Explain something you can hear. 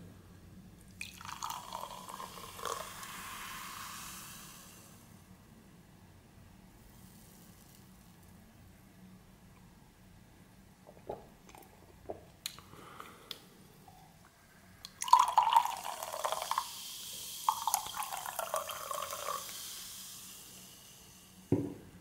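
Soda fizzes and crackles in a glass.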